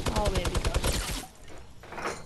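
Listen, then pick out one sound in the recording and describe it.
Wooden planks clatter in quick, rapid knocks as walls are built in a video game.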